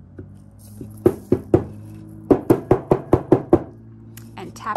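A stiff board is tapped sharply several times in quick succession.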